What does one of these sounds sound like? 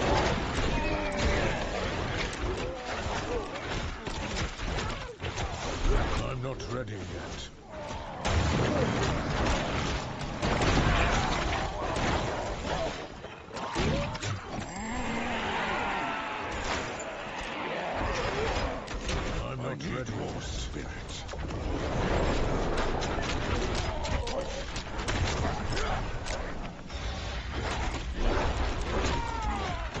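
Video game combat sounds of spells and blows clash rapidly.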